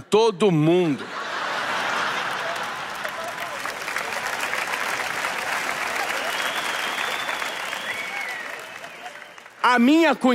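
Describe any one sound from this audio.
An audience applauds and cheers loudly.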